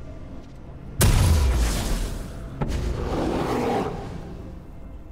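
A game spell bursts with a loud booming whoosh.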